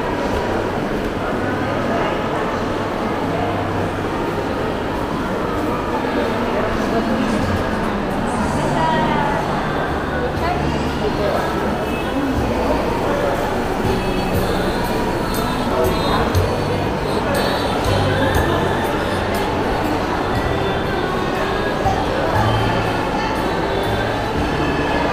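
A crowd murmurs and chatters, echoing in a large indoor hall.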